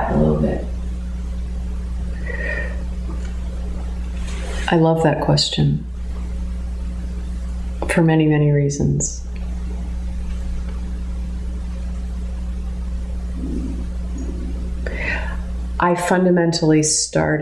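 A middle-aged woman speaks calmly and close by, with pauses.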